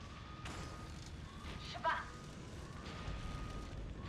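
Fists land with heavy thuds.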